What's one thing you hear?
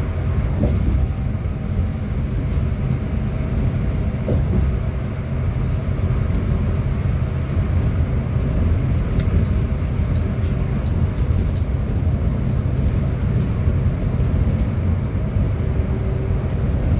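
Tyres roll and hum on the road surface.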